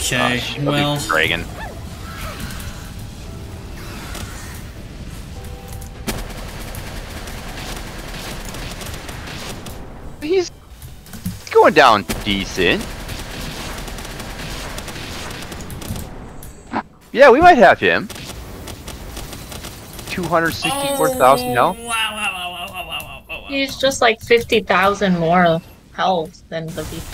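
Video game explosions and magic blasts boom and crackle during a battle.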